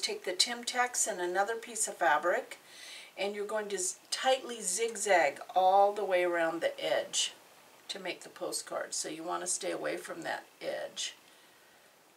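A middle-aged woman speaks calmly and clearly into a nearby microphone.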